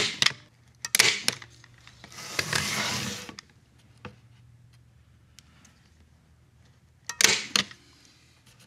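A staple gun snaps sharply several times.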